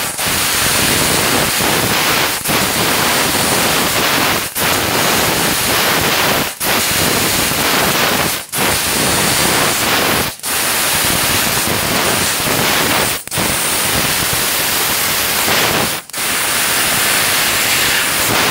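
A laser cutter hisses loudly and steadily as it cuts, pausing briefly between cuts.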